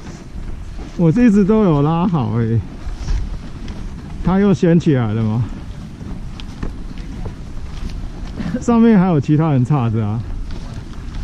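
A man speaks close by, in short calls.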